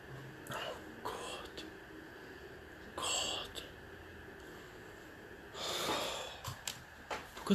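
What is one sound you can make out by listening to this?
A young man sighs and groans.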